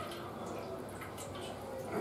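Water pours into a metal bowl.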